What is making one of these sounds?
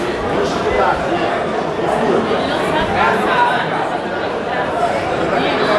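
A crowd of spectators shouts and cheers loudly.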